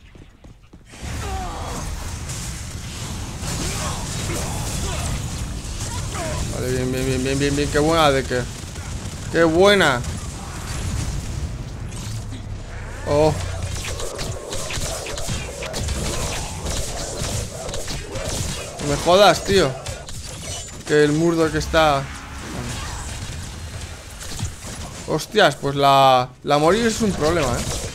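Game combat effects whoosh, crackle and blast.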